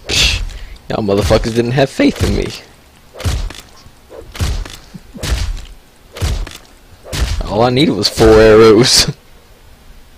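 An axe chops into flesh with heavy wet thuds.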